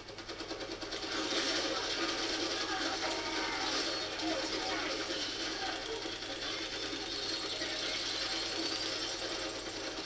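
Video game gunfire crackles rapidly through a loudspeaker.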